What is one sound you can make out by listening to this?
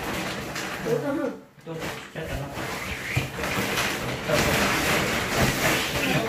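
Clothes and plastic bags rustle.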